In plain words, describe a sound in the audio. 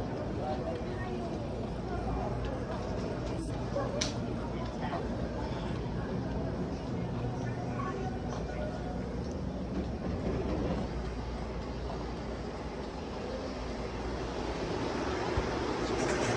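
Flip-flops slap softly on a hard floor with each step.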